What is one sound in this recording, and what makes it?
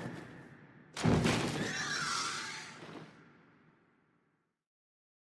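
A monster roars loudly, echoing through a large hall.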